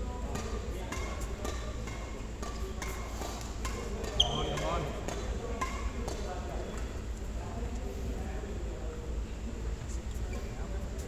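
Badminton rackets strike a shuttlecock back and forth in a large echoing hall.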